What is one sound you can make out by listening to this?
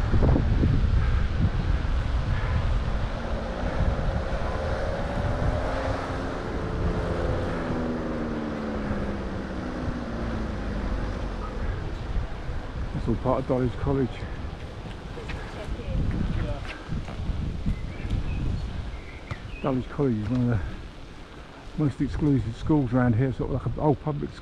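Wind rushes and buffets loudly against the microphone.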